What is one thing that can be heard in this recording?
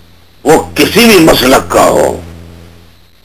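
A man speaks briefly over a broadcast line, then falls silent.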